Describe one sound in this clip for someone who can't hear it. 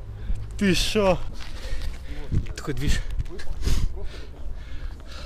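A young man talks and exclaims loudly close to the microphone.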